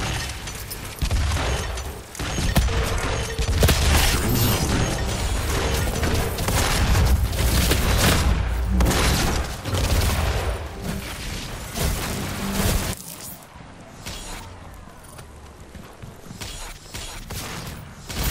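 Guns fire in bursts in a video game.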